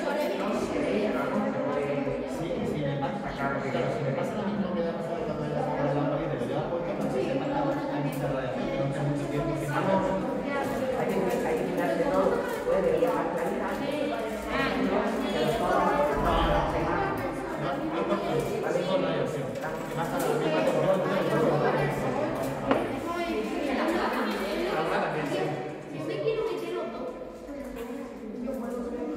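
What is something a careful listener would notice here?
Many children chatter at once in an echoing room.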